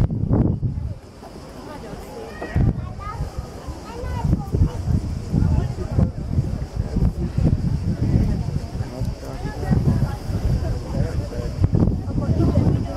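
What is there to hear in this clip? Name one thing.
Men and women chatter and call out at a distance outdoors.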